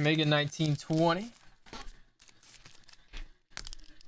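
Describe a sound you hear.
Foil card packs rustle and crinkle as they are set down.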